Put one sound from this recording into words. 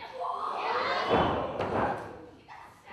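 A body slams onto a wrestling ring's canvas with a heavy thud.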